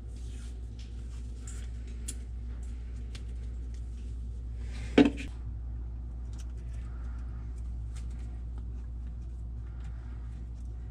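Plastic and fabric rustle softly as hands fiddle with a small part.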